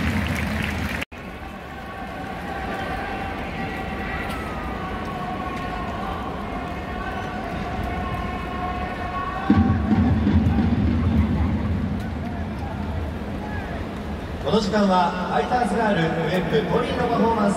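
A large crowd murmurs and cheers in an echoing indoor stadium.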